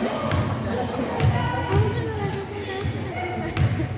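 A basketball bounces on a hardwood floor before a free throw.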